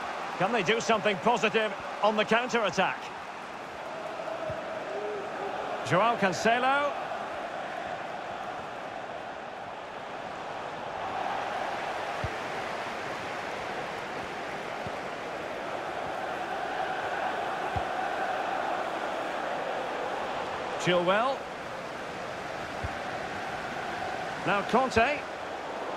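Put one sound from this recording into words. A large stadium crowd murmurs and cheers steadily in the background.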